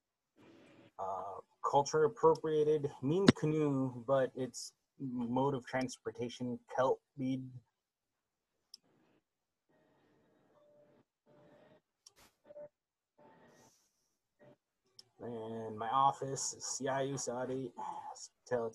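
A man speaks calmly through an online call microphone, reading out words.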